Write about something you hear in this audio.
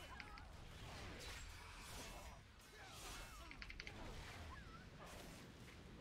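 Magic spells whoosh and crackle in a fantasy battle.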